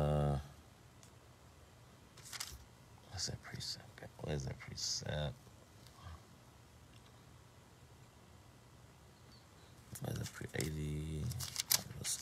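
A man speaks calmly and close by, in short bursts with pauses.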